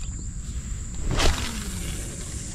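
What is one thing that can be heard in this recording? A fishing rod swishes through the air in a quick cast.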